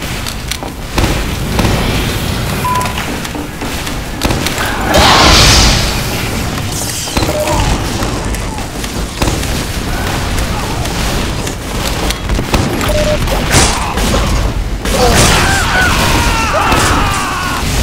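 Shotgun blasts go off again and again.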